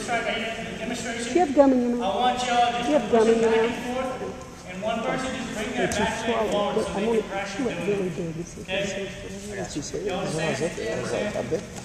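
A young man speaks to a group in a large echoing hall.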